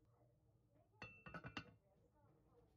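A lid clatters onto a pot.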